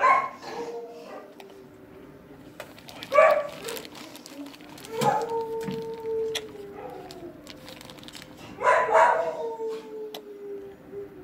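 A dog whines in long, high, wavering cries.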